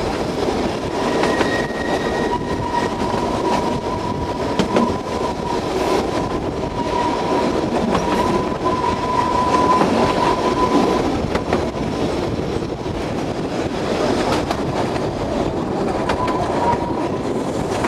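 Train wheels squeal on a curve.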